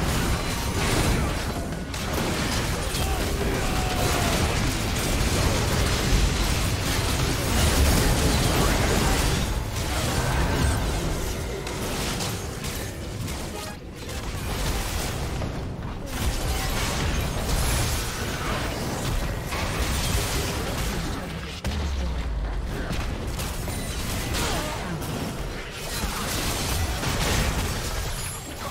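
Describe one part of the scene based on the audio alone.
Spell effects crackle and burst in a fast game battle.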